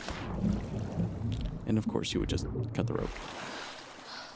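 Water splashes and sloshes.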